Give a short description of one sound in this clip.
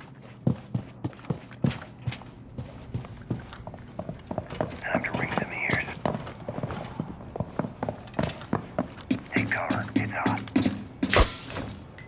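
Footsteps thud quickly on hard floors and stairs.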